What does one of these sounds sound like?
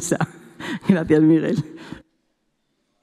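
A woman speaks cheerfully into a microphone, close and clear.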